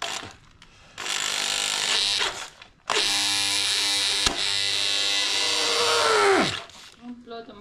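A power drill whirs in short bursts, boring into wood.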